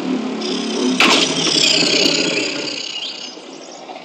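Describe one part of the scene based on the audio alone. A lion roars in pain.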